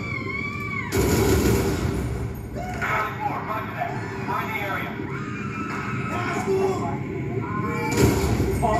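Gunshots from a video game ring out through television speakers.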